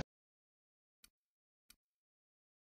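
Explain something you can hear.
Soft menu clicks tick twice.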